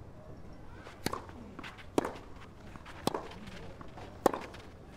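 A tennis ball is struck sharply by rackets back and forth in a rally.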